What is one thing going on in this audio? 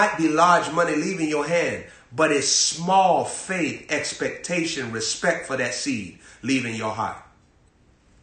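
A young man speaks forcefully and with animation close to a microphone.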